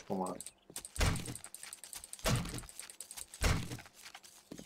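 A knife hacks into a carcass with dull thuds.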